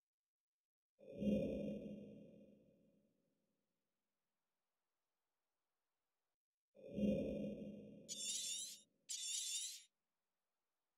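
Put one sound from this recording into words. A soft whooshing chime sounds each time a game map switches.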